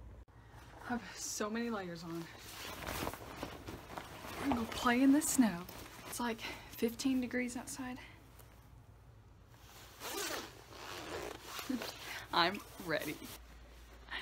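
A young woman talks with animation close to the microphone.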